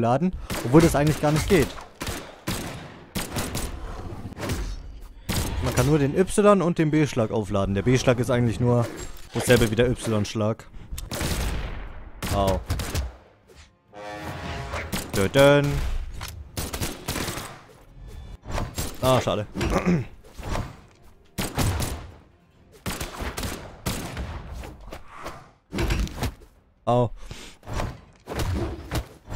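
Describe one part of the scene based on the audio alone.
Game fighters clash with quick hits and bursts of sound effects.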